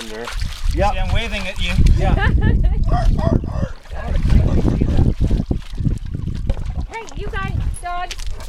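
A paddle dips and swishes through water.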